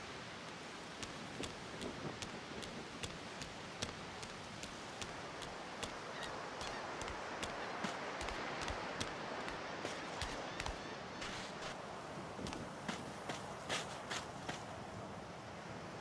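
Footsteps tap steadily on stone and sand.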